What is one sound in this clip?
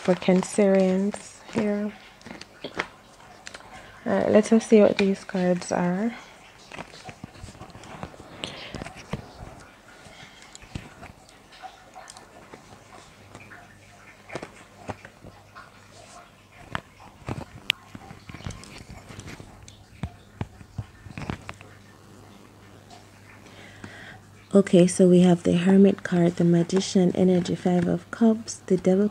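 Playing cards shuffle and slap softly onto a cloth-covered table.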